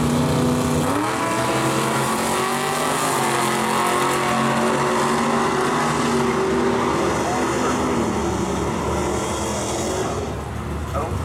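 Two cars roar off, their engines revving hard and rising in pitch as they speed away.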